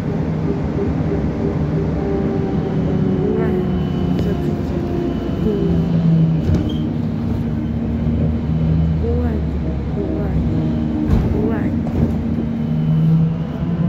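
A bus engine hums steadily from inside the bus.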